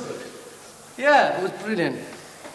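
A second young man answers.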